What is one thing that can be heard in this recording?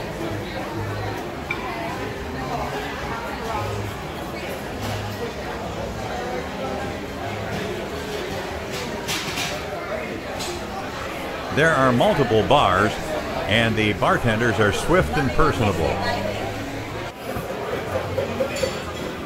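A low murmur of chatter fills a busy room.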